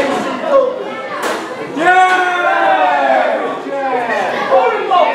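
A crowd of men and women shouts and chants loudly in an echoing hall.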